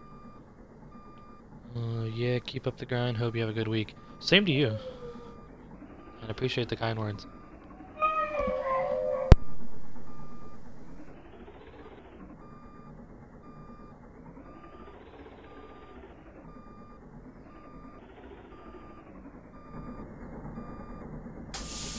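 A fire truck engine rumbles as it drives slowly.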